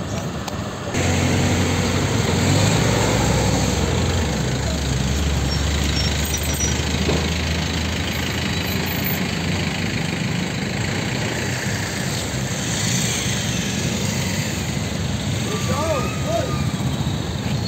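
A heavy engine idles nearby with a low, steady rumble.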